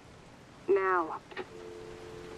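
A man's voice speaks briefly through a telephone handset.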